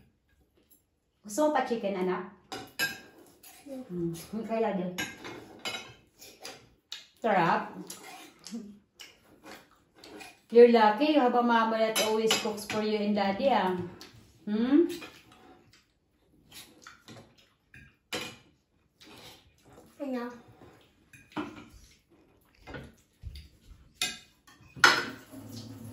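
Cutlery clinks and scrapes on plates.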